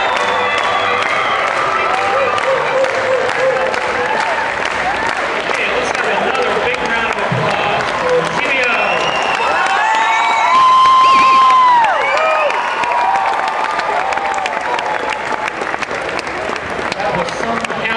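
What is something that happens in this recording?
A crowd of men and women cheer and whoop loudly in a large hall.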